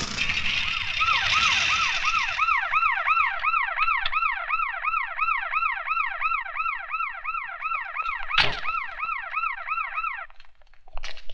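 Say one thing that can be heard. A siren wails up and down steadily.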